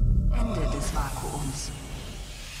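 Steam hisses out loudly.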